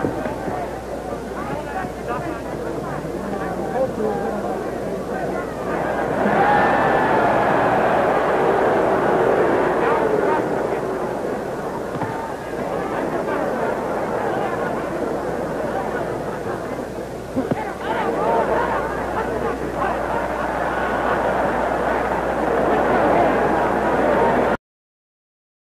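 A large crowd roars and cheers.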